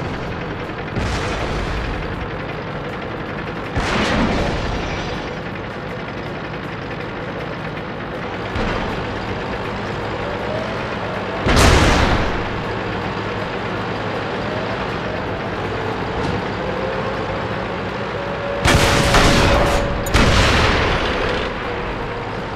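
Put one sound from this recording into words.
Tank cannons fire loud booming shots now and then.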